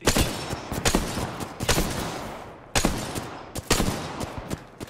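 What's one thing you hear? Gunshots ring out in loud, spaced bursts.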